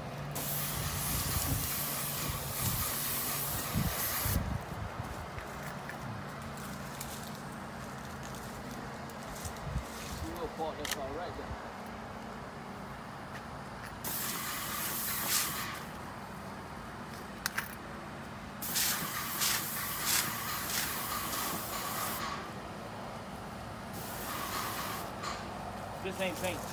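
A paint sprayer hisses in loud bursts.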